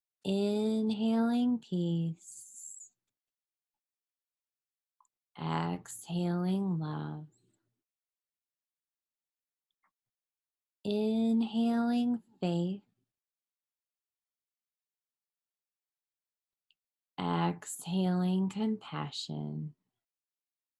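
A woman speaks calmly and clearly, close to a microphone, in short phrases with pauses.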